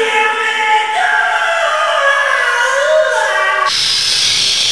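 A young man sings loudly.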